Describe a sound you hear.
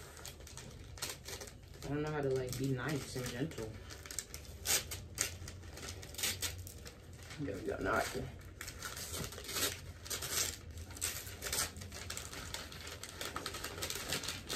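Paper crinkles and rustles as a gift is unwrapped.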